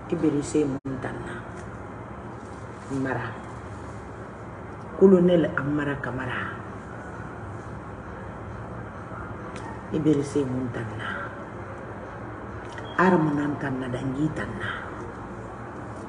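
A woman speaks slowly and with emphasis, close by, with pauses between phrases.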